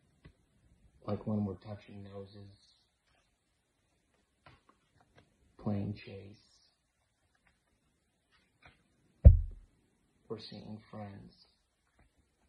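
A man reads aloud calmly, close to the microphone.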